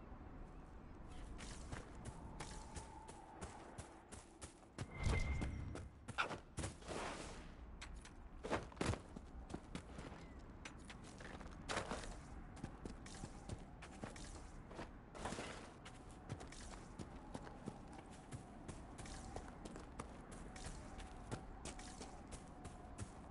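Footsteps crunch quickly over grass and gravel.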